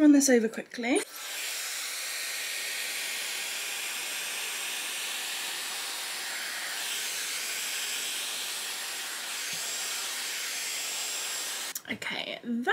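A hair styler blows air with a steady whooshing hiss.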